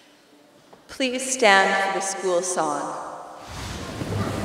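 An orchestra plays a final sustained chord in a large echoing hall.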